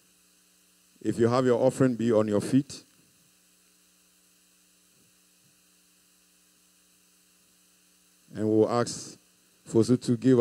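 A man preaches loudly and with fervour through a microphone, pausing between phrases.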